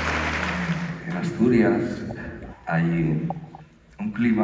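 An elderly man sings through a microphone and loudspeakers in a large hall.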